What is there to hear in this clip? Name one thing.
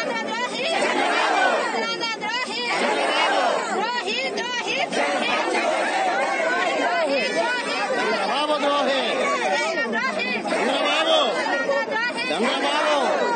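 A crowd of men and women chants slogans loudly outdoors.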